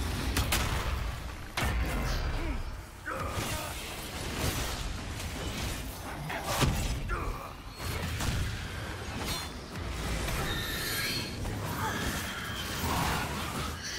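Magic bolts crackle and zap.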